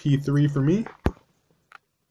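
Buttons click on a handheld game console.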